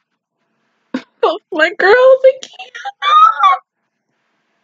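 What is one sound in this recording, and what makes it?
A young woman laughs loudly and close by.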